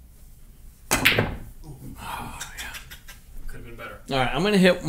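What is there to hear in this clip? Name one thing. Pool balls clack together and roll across the table.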